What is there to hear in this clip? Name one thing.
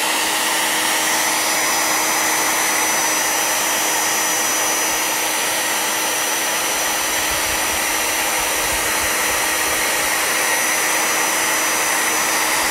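A hair dryer blows with a steady, loud whirring hiss close by.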